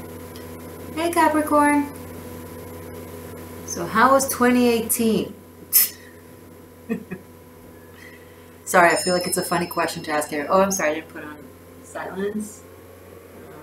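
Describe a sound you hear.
A woman speaks calmly and close to the microphone, in short phrases with pauses.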